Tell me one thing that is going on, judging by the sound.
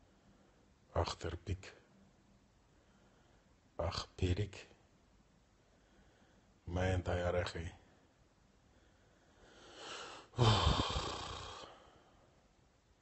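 A man speaks quietly and drowsily in short bursts, close to a phone microphone.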